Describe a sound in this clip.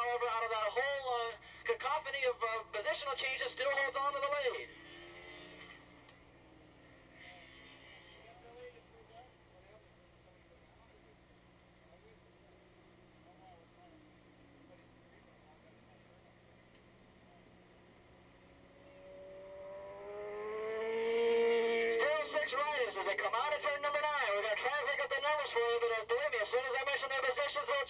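Racing motorcycle engines whine loudly and rev up and down, fading off in the distance and then growing loud again.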